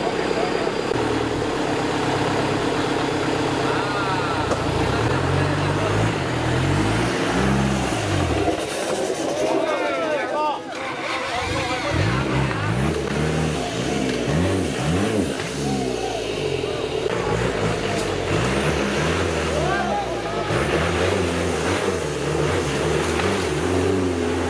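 An off-road engine revs hard, rising and falling as it strains through mud.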